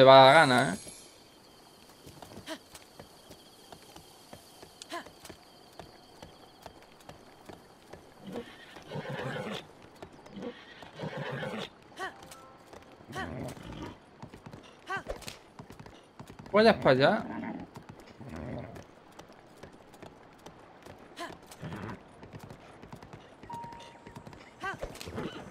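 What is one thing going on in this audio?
Hooves clatter on stone at a gallop.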